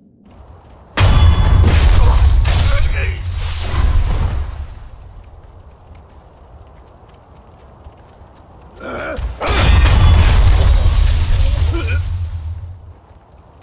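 Swords clash and slash in loud bursts.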